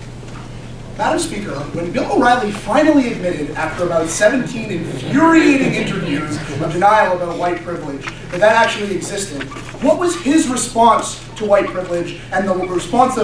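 A man speaks with animation, lecturing in a room with a slight echo.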